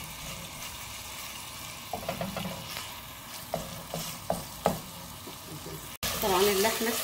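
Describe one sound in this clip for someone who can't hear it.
A wooden spoon scrapes and taps against a pot while stirring.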